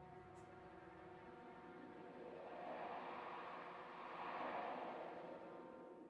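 An orchestra plays, swelling louder in the middle.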